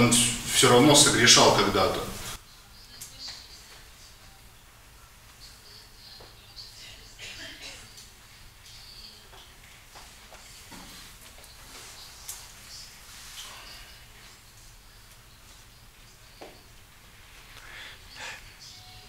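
A man lectures calmly from across a room, heard faintly.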